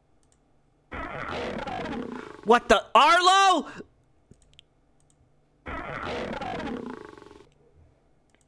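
Cartoon slippers flap and squeak with comic boinging sounds.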